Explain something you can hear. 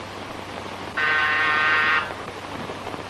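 A doorbell buzzes briefly.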